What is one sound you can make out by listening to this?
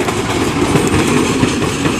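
A diesel locomotive engine roars as it passes.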